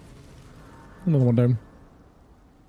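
A bright shimmering chime rings out.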